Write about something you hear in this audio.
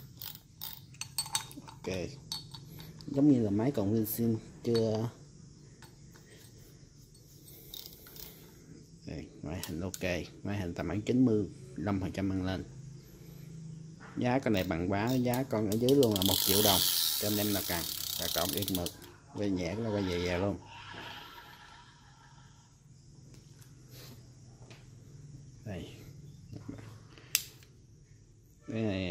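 Small plastic reel parts click and clack as they are handled.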